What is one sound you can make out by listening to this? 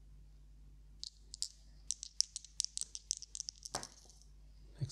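Dice rattle in a cupped hand.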